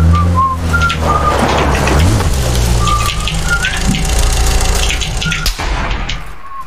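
A vehicle engine idles with a low rumble, then cuts out.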